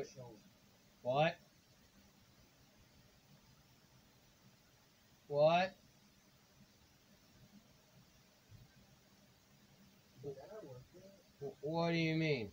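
Short electronic menu chimes beep from a video game.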